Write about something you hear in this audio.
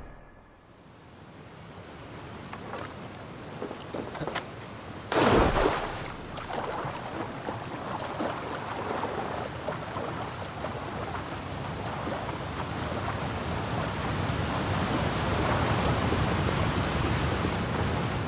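A waterfall roars and grows steadily louder.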